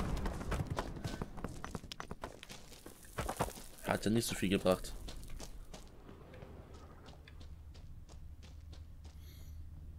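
Footsteps tread on rocky ground.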